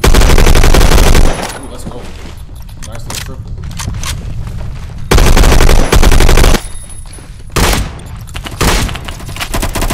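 Loud bursts of rapid gunfire blast from a video game.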